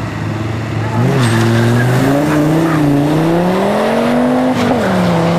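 A car accelerates hard and pulls away with a rising engine roar.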